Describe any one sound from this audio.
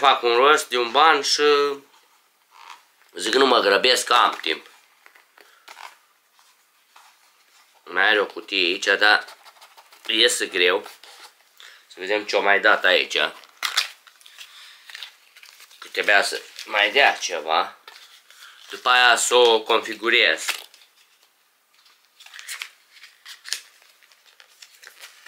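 Cardboard packaging rustles and scrapes in a man's hands.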